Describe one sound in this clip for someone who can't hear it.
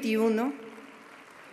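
A woman speaks through loudspeakers in a large echoing hall.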